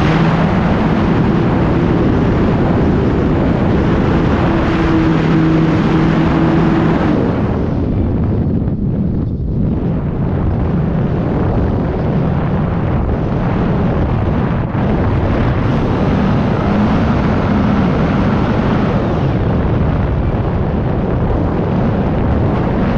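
Wind rushes hard past the microphone.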